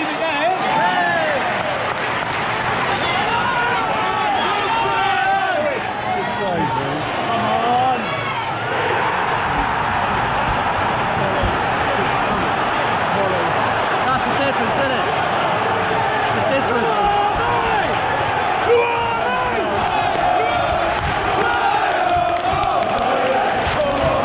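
A large stadium crowd sings and chants loudly all around.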